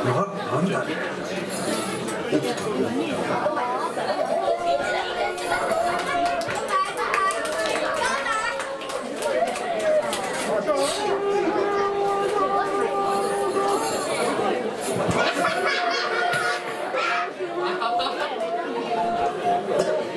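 A bamboo flute plays a wavering melody close by.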